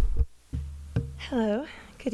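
A second woman begins speaking through a microphone.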